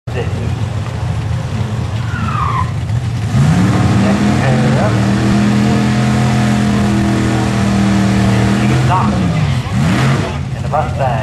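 Tyres squeal as they spin in a burnout.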